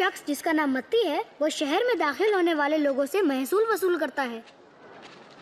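An elderly woman speaks with animation, close by.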